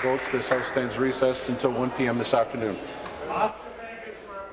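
A man speaks loudly and formally into a microphone in a large echoing hall.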